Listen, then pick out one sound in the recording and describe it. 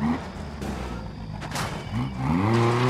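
A car body crashes and scrapes against a barrier.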